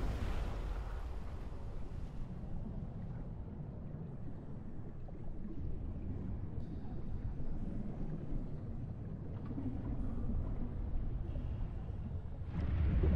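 A low, muffled underwater rumble drones on steadily.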